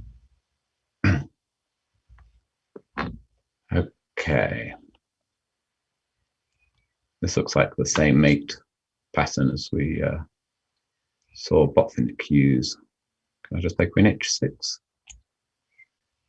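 A man speaks into a close microphone, thinking aloud in short bursts.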